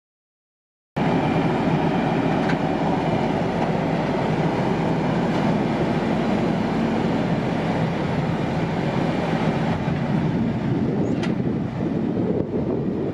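A heavy truck engine rumbles steadily close by.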